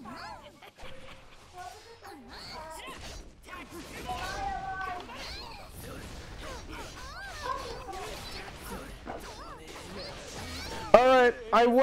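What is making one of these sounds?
Sword blades slash and clash in quick bursts.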